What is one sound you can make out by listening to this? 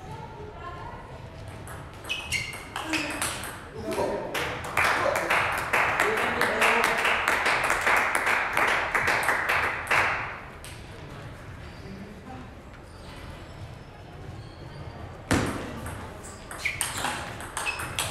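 A table tennis ball clicks back and forth on paddles and the table in a large echoing hall.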